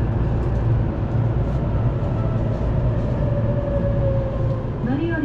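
Train brakes squeal briefly, sliding down in pitch.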